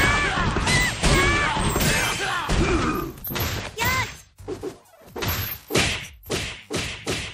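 Blows land with sharp, heavy thuds in quick succession.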